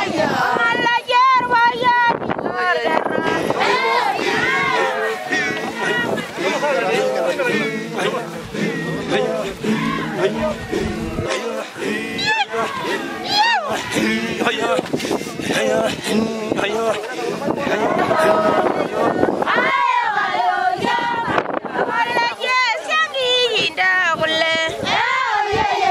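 A group of women sing together loudly outdoors.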